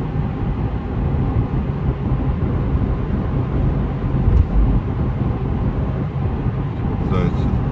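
Tyres roar on the road surface.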